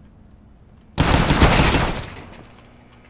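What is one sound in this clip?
Pistol shots ring out in a quick burst.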